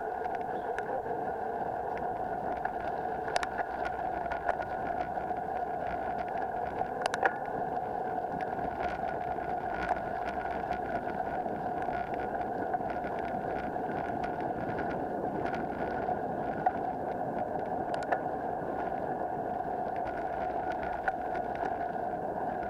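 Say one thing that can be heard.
Bicycle tyres crunch over a dirt trail.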